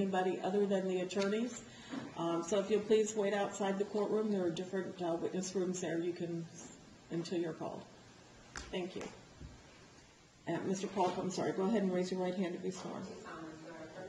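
A woman speaks clearly through a microphone.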